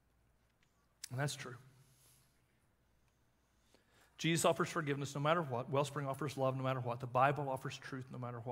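A middle-aged man speaks calmly into a microphone, with long pauses.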